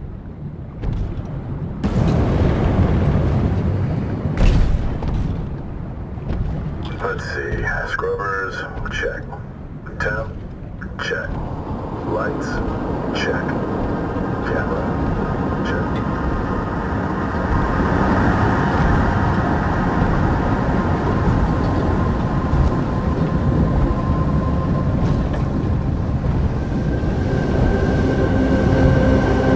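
A low underwater rumble surrounds a small submarine moving through water.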